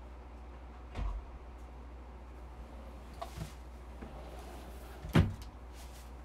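A soft plush toy bumps and rustles against a microphone.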